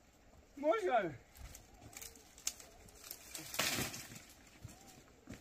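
Dry branches rustle and crackle as they are handled.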